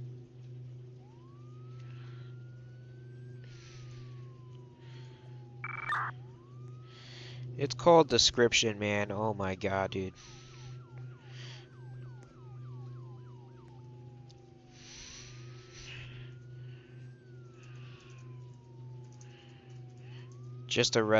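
A siren wails nearby, rising and falling.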